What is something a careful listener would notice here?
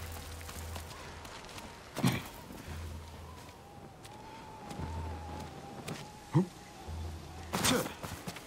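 Footsteps crunch in snow.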